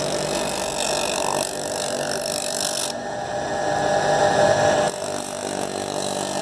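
An electric motor hums and whirs steadily close by.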